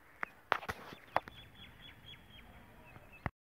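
A bird of prey gives a series of short, high chirps.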